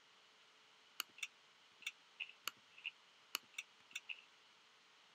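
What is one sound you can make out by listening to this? Short clicks sound in quick succession as items are bought from a game menu.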